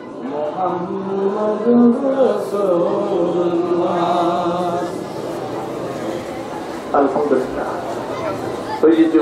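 A middle-aged man speaks steadily and with feeling into a microphone, heard through a loudspeaker.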